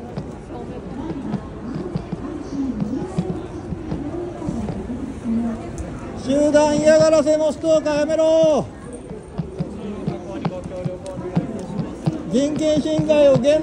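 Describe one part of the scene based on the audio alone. A crowd of men and women talks in low voices outdoors.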